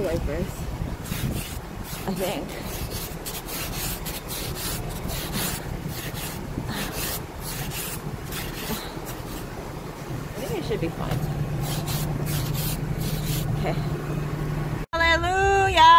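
An ice scraper scrapes frost off a car windshield.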